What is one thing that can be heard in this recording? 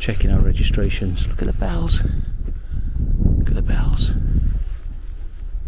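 Wind buffets outdoors in low gusts.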